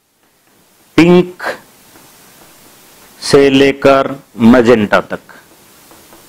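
A man speaks in short bursts, lecturing with emphasis close to a microphone.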